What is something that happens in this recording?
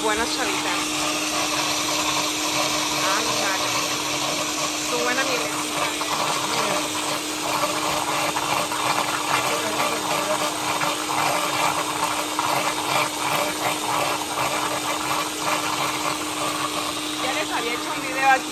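A blender whirs steadily as it blends.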